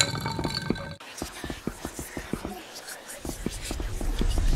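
Footsteps tap on stone.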